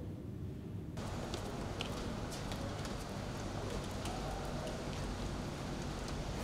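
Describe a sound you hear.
Footsteps climb stone steps outdoors.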